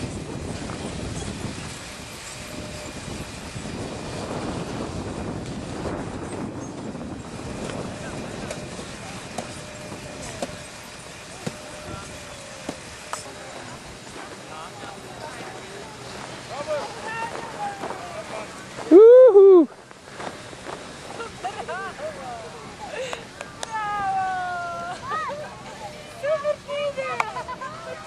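Skis scrape and slide over snow.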